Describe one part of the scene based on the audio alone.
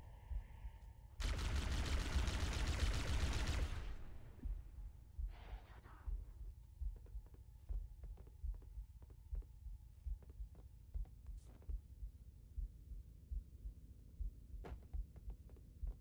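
Footsteps thud steadily on a metal floor.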